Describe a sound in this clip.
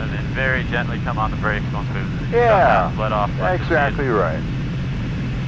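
A young man speaks calmly through a headset intercom.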